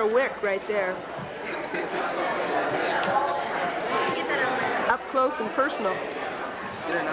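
A woman talks cheerfully close by.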